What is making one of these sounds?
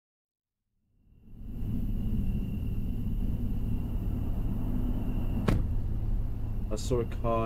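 A car engine rumbles steadily at idle.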